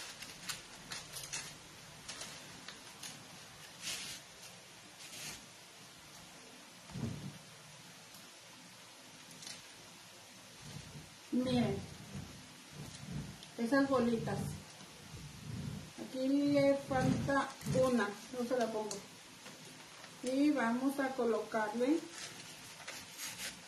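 Plastic leaves rustle as a woman handles an artificial flower arrangement.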